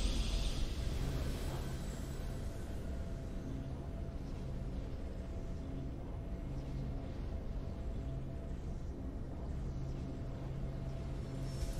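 A calm, triumphant tune plays softly.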